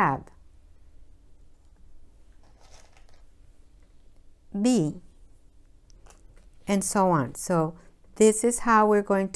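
A woman speaks clearly and warmly, close to a microphone, in short phrases.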